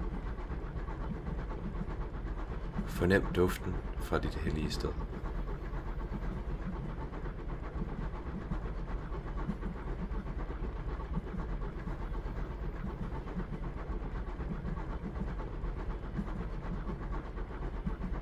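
A train rolls along rails with a low, steady rumble.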